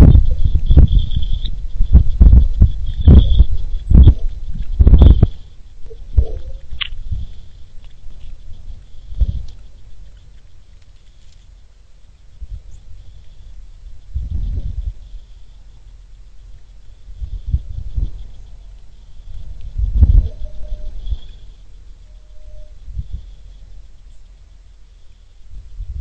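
Small birds chirp softly.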